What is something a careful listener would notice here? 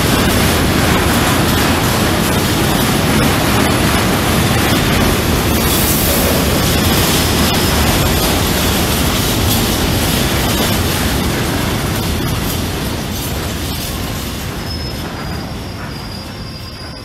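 Freight wagon wheels clatter over rail joints.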